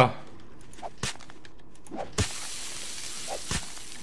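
A spiked club thuds repeatedly into flesh.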